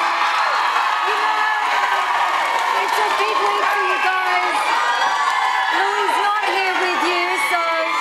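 A woman speaks with animation over the crowd noise.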